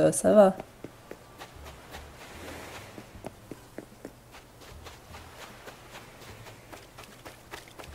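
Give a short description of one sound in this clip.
Footsteps patter quickly over sand.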